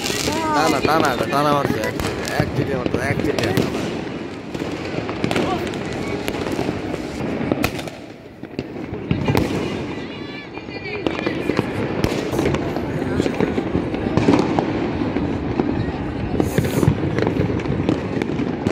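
Distant fireworks pop and crackle across a city.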